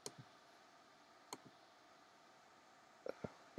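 A game menu button clicks.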